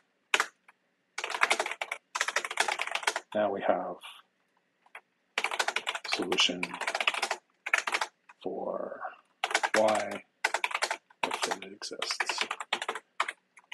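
Computer keys clatter as someone types.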